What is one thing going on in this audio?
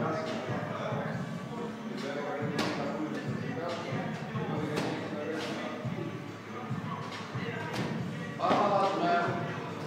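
A woman's feet land with dull thumps on a rubber mat as she jumps.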